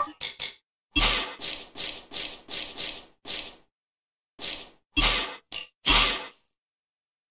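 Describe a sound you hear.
Short menu blips sound one after another.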